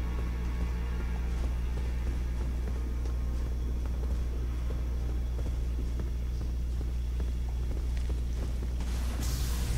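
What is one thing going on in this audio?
Footsteps scuff across stone.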